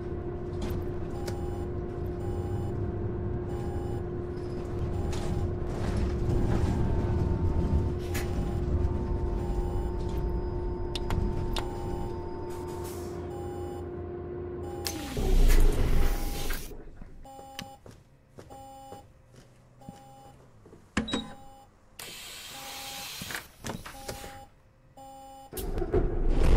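A bus turn indicator ticks.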